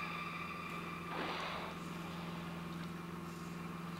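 An orca blows out a loud burst of breath.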